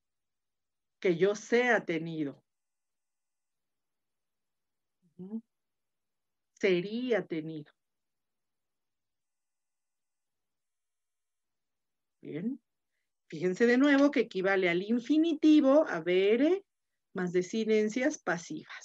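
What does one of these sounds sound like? A young woman speaks calmly through an online call, with pauses.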